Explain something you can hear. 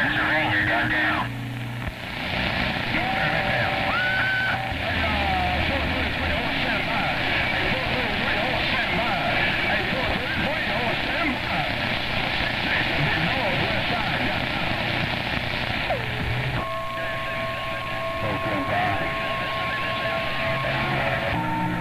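Radio static hisses and crackles from a loudspeaker.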